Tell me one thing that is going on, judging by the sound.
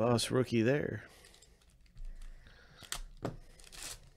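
A foil wrapper crinkles.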